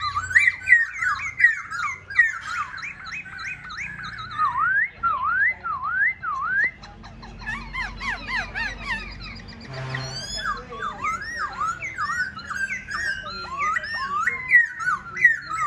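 A black-throated laughingthrush sings a loud, varied whistled song.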